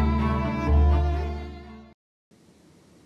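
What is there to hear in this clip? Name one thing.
An orchestra plays music, then stops abruptly.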